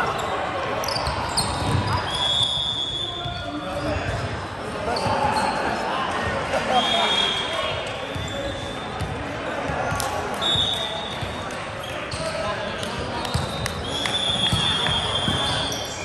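A volleyball thumps off players' hands.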